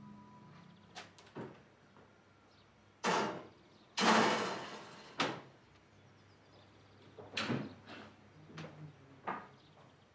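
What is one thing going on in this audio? A spoon clinks against a serving dish.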